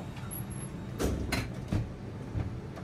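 A heavy aircraft door latch clunks as it is opened.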